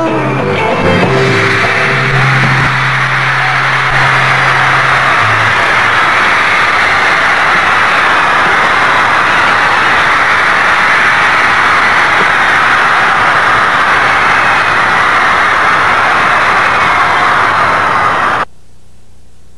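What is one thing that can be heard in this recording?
A large crowd screams and cheers loudly in a big echoing hall.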